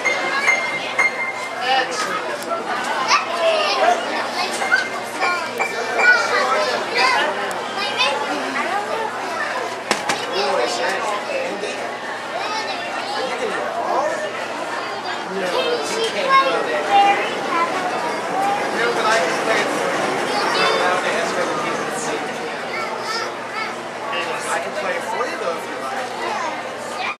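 Young girls talk and giggle excitedly nearby.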